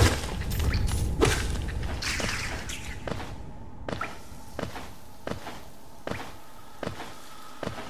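Light footsteps patter repeatedly as a small game character lands and runs.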